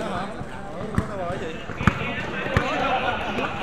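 A basketball bounces hard on a court.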